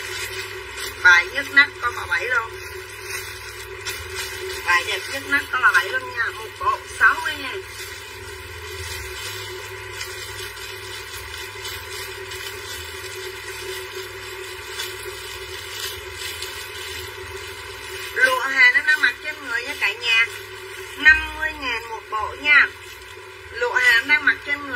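A woman speaks with animation close to the microphone.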